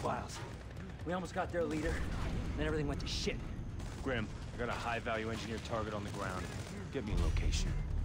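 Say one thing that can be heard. A man speaks in a low, urgent voice close by.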